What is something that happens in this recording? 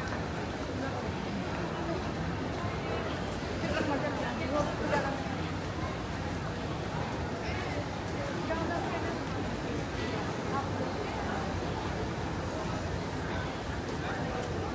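A crowd of people chatters in the background outdoors.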